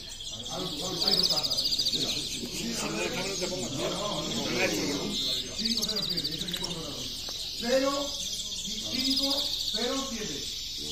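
Small caged birds sing in short, high trills.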